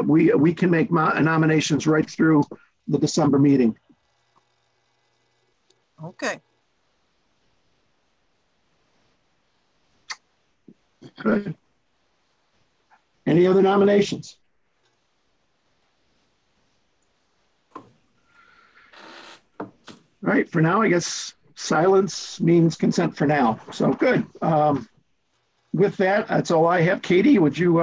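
A middle-aged man talks over an online call.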